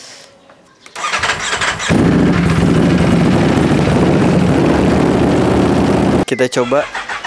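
A motorcycle engine starts and roars loudly as it is revved.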